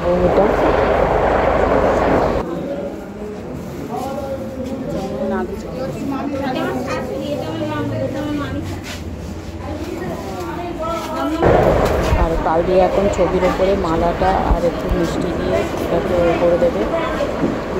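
Cloth rustles and rubs close by.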